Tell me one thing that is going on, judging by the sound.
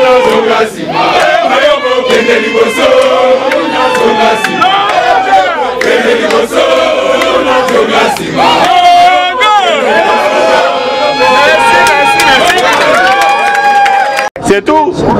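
A crowd of men and women sings loudly together.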